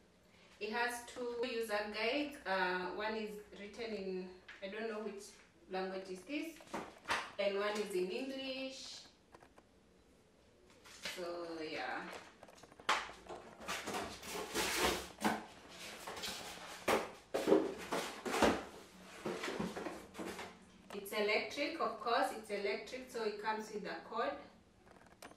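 A young woman talks calmly and close by.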